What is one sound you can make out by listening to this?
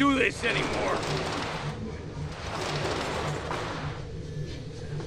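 A metal roller shutter rattles as it is forced up.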